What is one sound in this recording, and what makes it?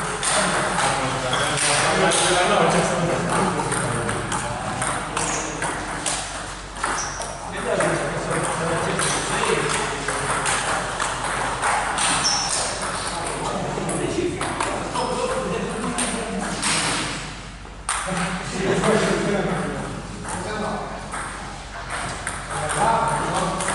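A ping-pong ball clicks back and forth off paddles and a table in an echoing hall.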